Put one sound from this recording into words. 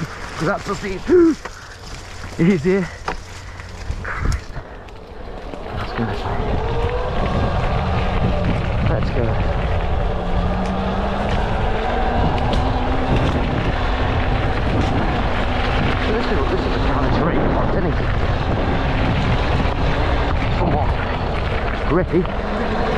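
Footsteps crunch on dry leaves and gravel.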